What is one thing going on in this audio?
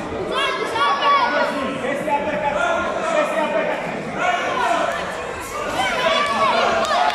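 Several people shout encouragement loudly in an echoing hall.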